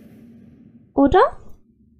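A young woman speaks briefly into a close microphone.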